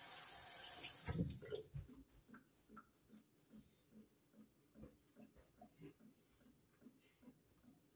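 A top-load washing machine agitates, with a thump and then rhythmic sloshing.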